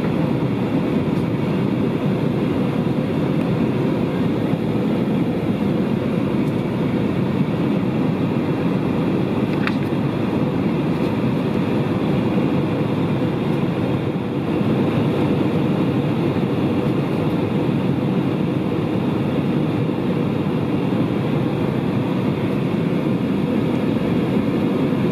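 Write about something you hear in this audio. The engines of an airliner roar steadily and low throughout.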